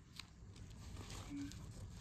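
A plastic cover crinkles as hands smooth it over a book.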